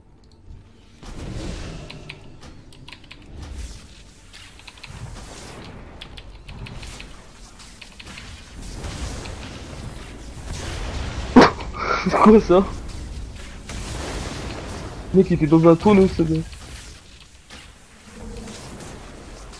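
Blows and impacts thud in quick succession.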